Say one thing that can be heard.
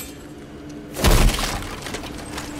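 A heavy wooden chest thuds open with a loud burst.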